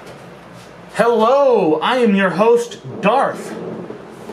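A man speaks loudly and theatrically, close by, with his voice swooping up and down.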